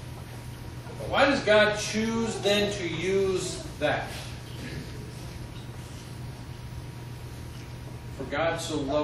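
A man speaks with animation in an echoing room.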